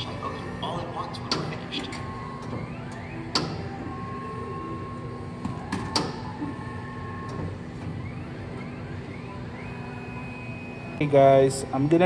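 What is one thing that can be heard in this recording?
A machine whirs and clicks inside.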